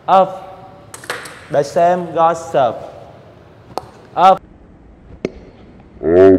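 A table tennis ball clicks on a paddle and the table.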